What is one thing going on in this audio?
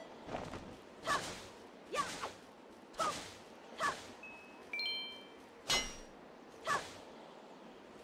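A blade swishes sharply, again and again, slicing through grass.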